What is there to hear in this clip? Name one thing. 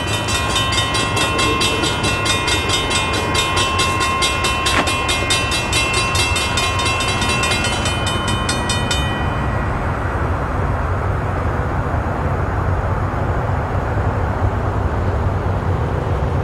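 A train rumbles as it approaches from far off.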